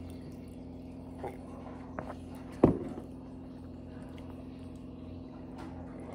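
A woman sips from a mug.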